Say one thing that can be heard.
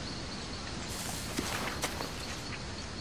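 Footsteps crunch on forest ground.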